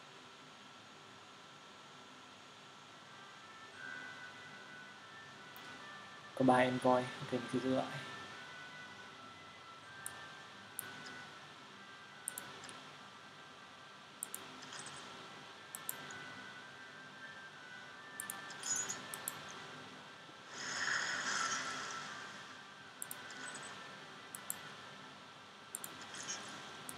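Soft game music plays steadily.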